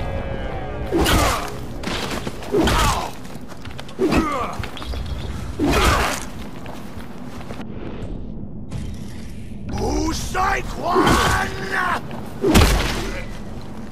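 Heavy club blows thud against a body.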